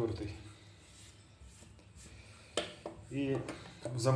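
A straight razor is set down on a hard surface with a light click.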